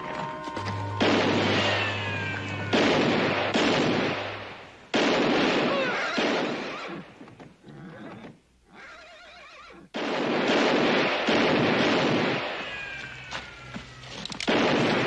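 Bullets ricochet off rock with a whining whistle.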